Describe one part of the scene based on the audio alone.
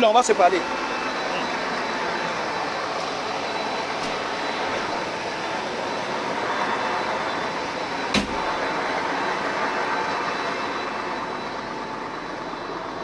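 Wind rushes steadily across the microphone outdoors.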